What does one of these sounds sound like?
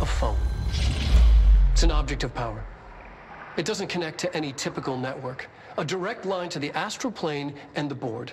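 A middle-aged man speaks calmly through a loudspeaker.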